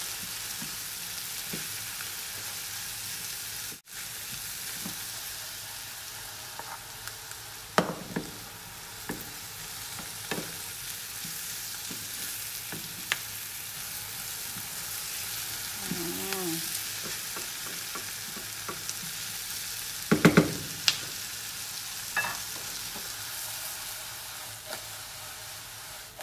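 Mushrooms and onions sizzle in a frying pan.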